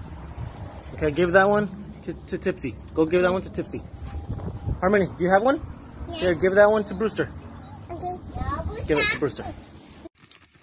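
A young girl talks up close in a high voice.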